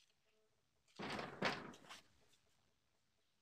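A metal door latch clicks and clatters.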